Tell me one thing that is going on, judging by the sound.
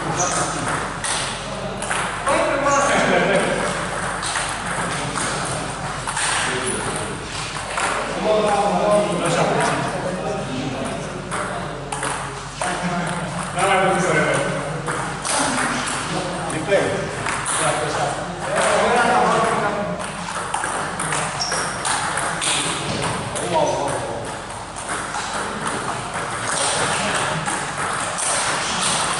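Ping-pong balls click against paddles and a table in a large echoing hall.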